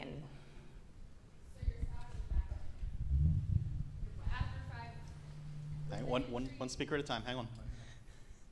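A crowd of adults chatters quietly in a large room.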